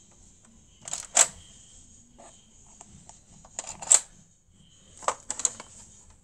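Fingers tap and click against a plastic toy.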